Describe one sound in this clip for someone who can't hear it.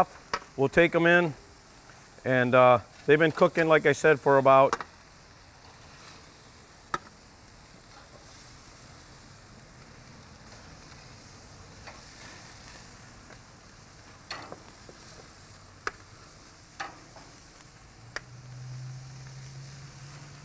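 Metal tongs clink against a grill and a metal pan.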